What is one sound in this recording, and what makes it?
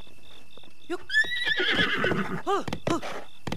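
A horse neighs loudly.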